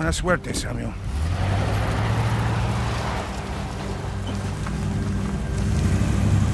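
A van engine rumbles as the van drives away.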